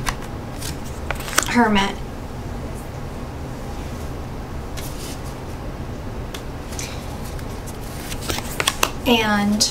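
A playing card is slid and laid down on a soft surface.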